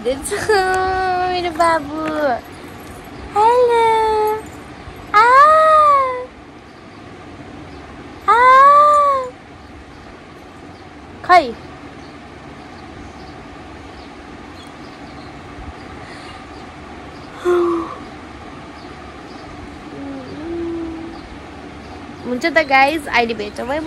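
A young woman sings and talks playfully, close by.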